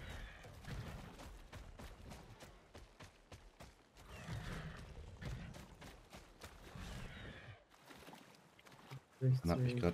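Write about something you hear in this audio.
Water splashes as a creature runs through a stream.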